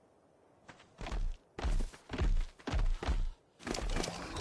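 A large creature growls and snarls in loud bursts.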